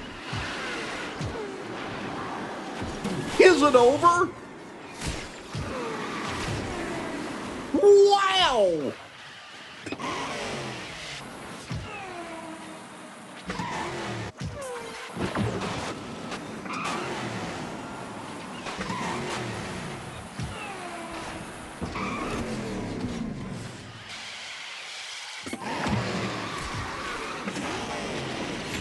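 A racing kart engine whines at high speed.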